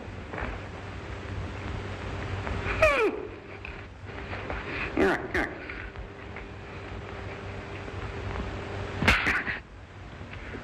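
A man grunts and groans with strain.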